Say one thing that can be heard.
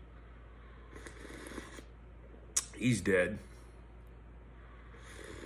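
A man sips a drink from a metal cup.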